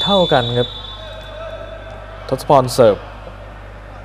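A volleyball bounces on an indoor court floor.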